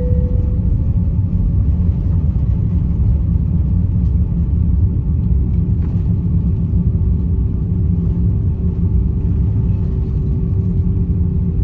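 Wheels rumble over the runway.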